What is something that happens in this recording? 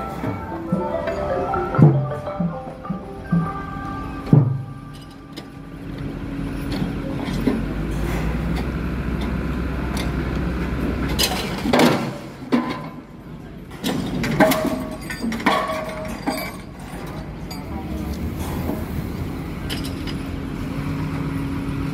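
A large diesel engine rumbles steadily.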